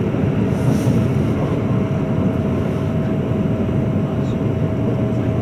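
An electric express train rumbles along the track at speed, heard from inside a carriage.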